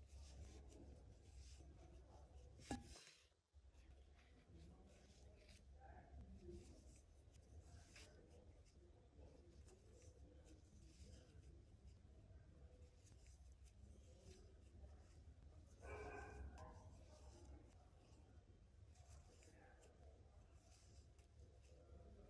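Yarn rustles softly as a crochet hook pulls loops through.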